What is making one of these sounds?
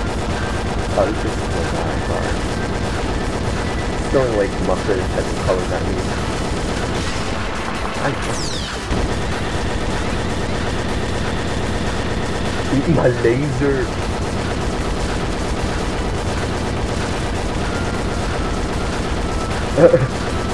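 Explosions burst now and then.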